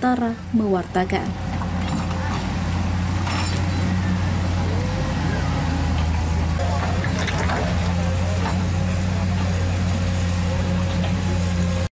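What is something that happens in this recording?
A diesel excavator engine rumbles steadily nearby.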